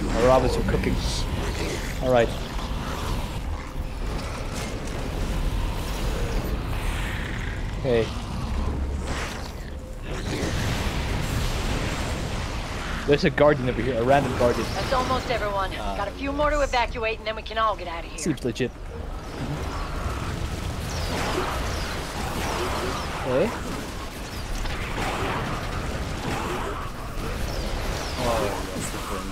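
Flames roar and blast in a noisy battle.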